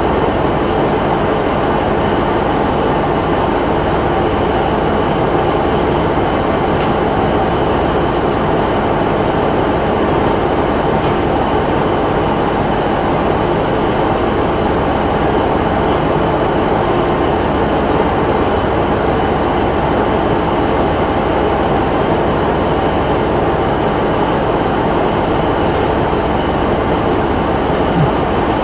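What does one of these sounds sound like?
A train engine idles with a steady, loud rumble.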